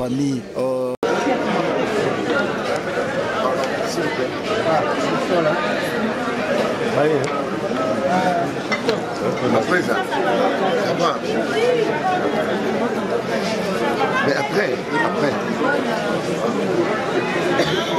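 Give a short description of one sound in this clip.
A crowd chatters loudly in an echoing hall.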